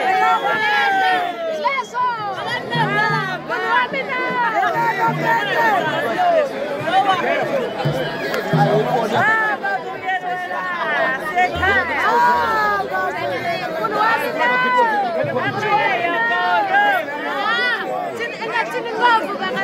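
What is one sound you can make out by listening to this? A large crowd of young men and women sings and shouts together outdoors.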